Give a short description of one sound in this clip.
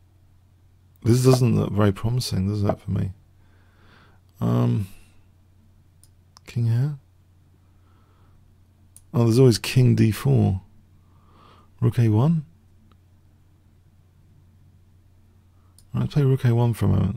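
An older man talks into a microphone in short, thoughtful bursts with pauses.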